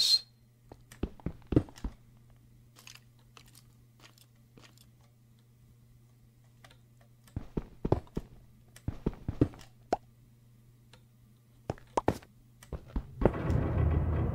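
Stone blocks break with crunching clicks.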